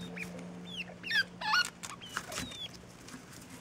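A small rodent squeaks in short high chirps.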